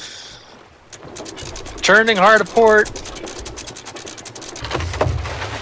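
An anchor chain rattles and clicks quickly as a capstan turns.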